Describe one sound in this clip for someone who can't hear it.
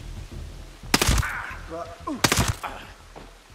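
A rifle fires two sharp shots.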